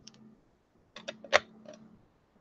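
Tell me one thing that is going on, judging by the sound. A plastic ruler taps down on a hard surface.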